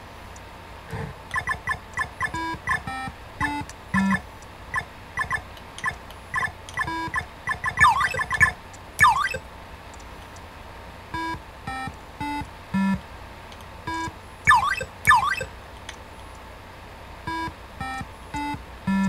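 Retro video game music plays in short, bright electronic beeps.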